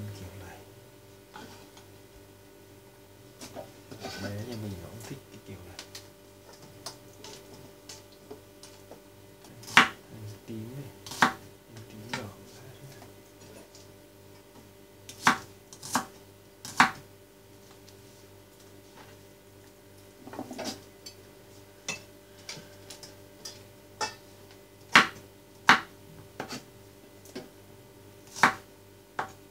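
A knife chops on a wooden board with sharp knocks.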